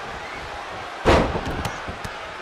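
A body slams down onto a wrestling ring mat with a heavy thud.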